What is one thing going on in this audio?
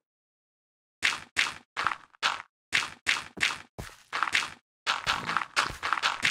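A pickaxe chips rapidly at packed dirt.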